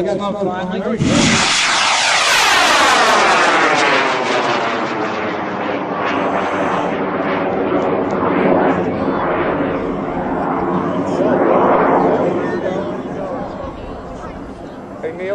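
A rocket motor hisses and roars as it climbs away, slowly fading.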